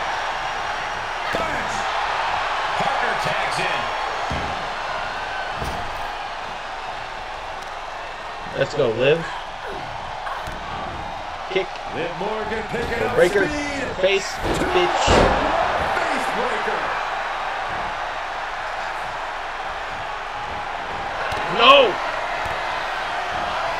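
Wrestlers thud onto a ring mat.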